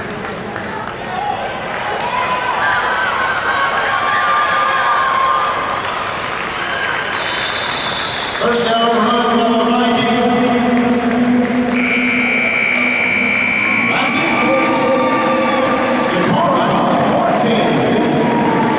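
Young players and coaches shout and call out across a large echoing hall.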